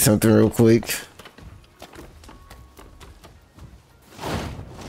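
Footsteps clatter quickly across roof tiles.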